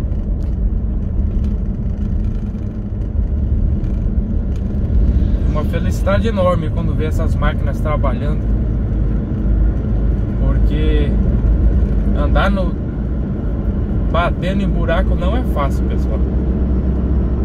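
A vehicle's engine hums steadily from inside the cab.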